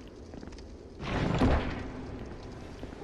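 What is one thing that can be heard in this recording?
A heavy chest lid creaks open.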